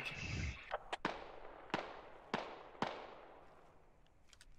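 A rifle fires single shots, each followed by a long rolling echo.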